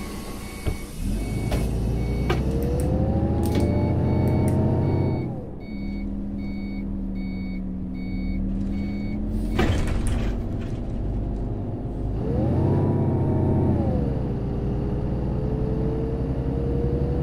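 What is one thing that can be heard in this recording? A bus engine revs up and down as the bus pulls away and drives.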